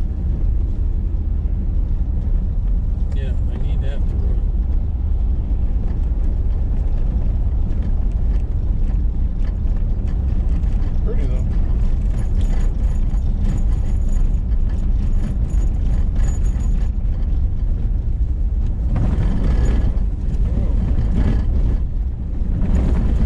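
Tyres crunch and rumble on a gravel road.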